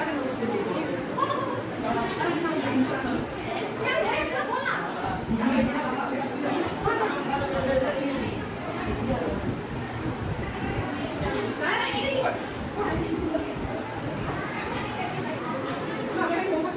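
Several children talk with one another close by, over a babble of voices in an echoing room.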